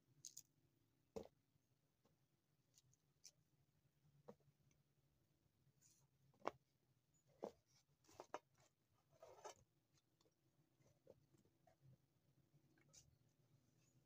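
A knife cuts through firm fruit with sharp clicks.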